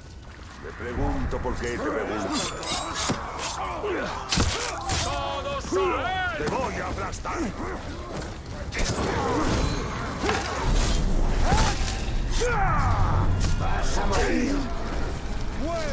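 Male warriors shout and grunt fiercely.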